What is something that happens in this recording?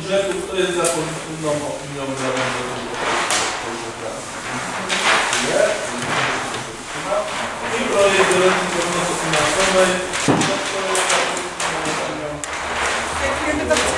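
A woman speaks with animation nearby in an echoing room.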